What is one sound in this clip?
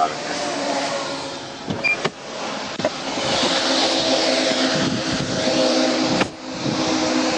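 A heavy truck roars past close by.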